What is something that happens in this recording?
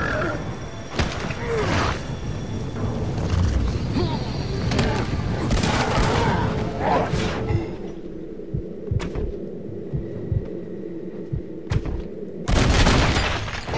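Punches land with heavy thuds during a brawl.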